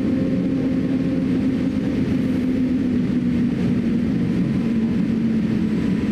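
Aircraft wheels rumble along a runway.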